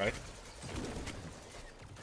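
A gun fires a loud blast.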